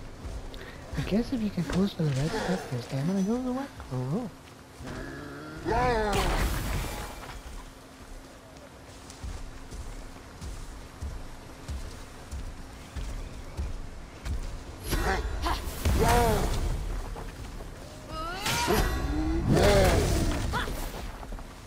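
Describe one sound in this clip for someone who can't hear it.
A giant monster roars loudly.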